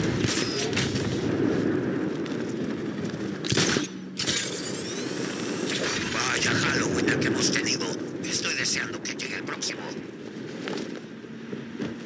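Wind rushes loudly past a gliding figure.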